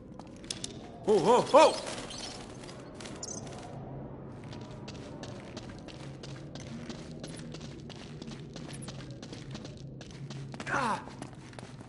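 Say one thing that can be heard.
Footsteps run on stone in an echoing tunnel.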